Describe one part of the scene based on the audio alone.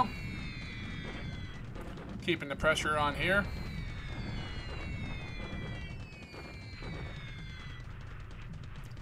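Falling bombs whistle with a slowly dropping pitch.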